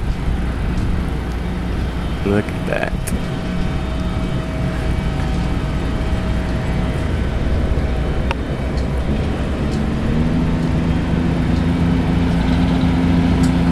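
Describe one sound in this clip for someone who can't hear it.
Wind blows and rumbles across an open outdoor space.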